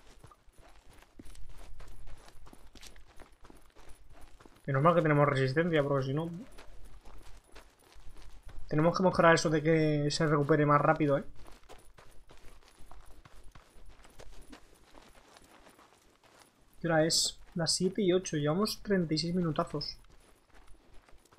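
Footsteps crunch on gravel at a running pace.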